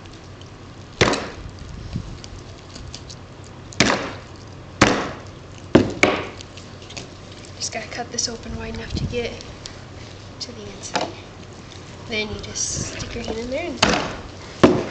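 Knife blades knock sharply against a table.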